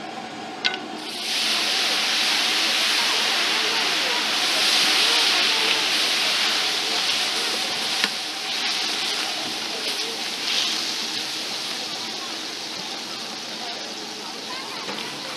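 Water hisses and sizzles loudly on a hot griddle, then slowly fades.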